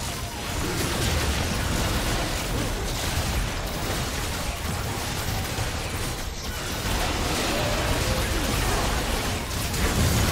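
Game spell effects whoosh and crackle in a busy battle.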